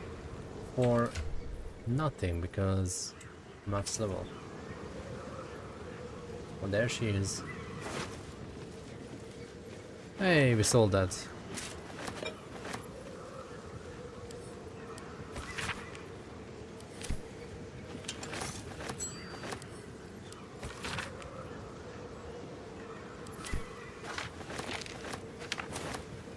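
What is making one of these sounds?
Soft game menu clicks sound as items are picked and opened.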